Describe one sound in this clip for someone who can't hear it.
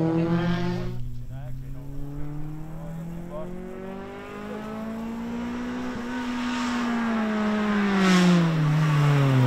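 A racing car engine revs hard as it approaches up the road.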